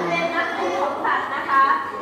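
A woman speaks loudly through a megaphone.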